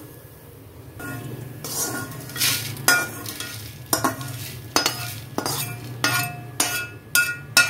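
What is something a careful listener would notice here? Dry flakes rustle and spill onto a metal plate.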